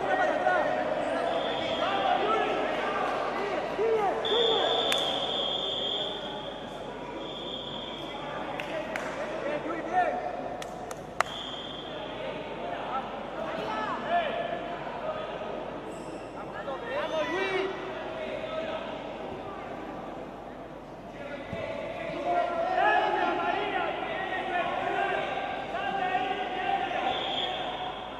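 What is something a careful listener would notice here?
Men call out and talk in a large echoing hall.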